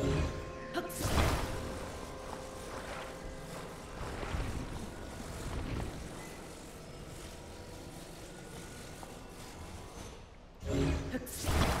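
A low magical hum drones steadily.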